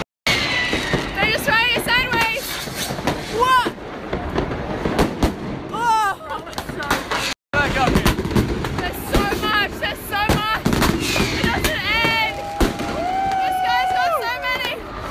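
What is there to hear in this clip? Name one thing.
Rockets whistle as they shoot up.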